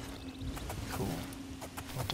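A horse's hooves clop on a stone road.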